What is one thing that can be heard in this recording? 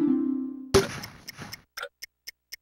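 A video game plays a loud hit sound.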